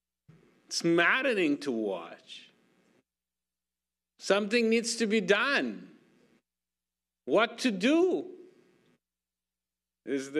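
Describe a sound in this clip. A middle-aged man speaks with animation into a microphone, in short phrases with pauses.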